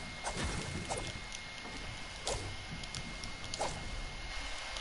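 A pickaxe strikes stone with sharp repeated knocks.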